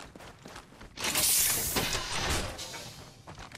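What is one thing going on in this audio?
A metal supply crate hisses and clanks open.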